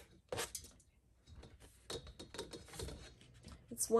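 Chopped vegetables slide off a plastic board and drop into a metal pot.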